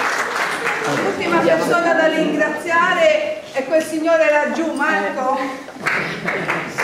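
A woman speaks with animation to a crowd.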